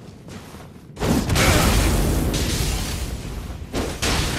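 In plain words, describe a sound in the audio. Ice shatters and crackles in a burst.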